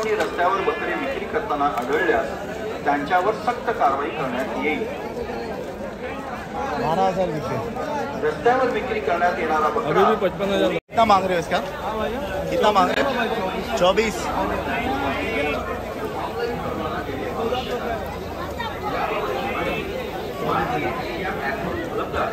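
A crowd of people chatters and calls out nearby.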